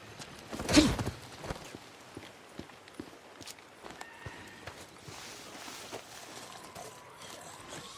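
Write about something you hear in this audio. Footsteps crunch softly through dry grass.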